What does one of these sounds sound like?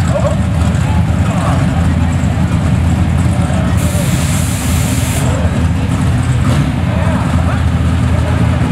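Racing car engines rumble loudly and steadily nearby, outdoors.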